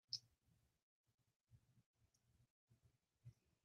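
Paper rustles and taps softly as hands handle it.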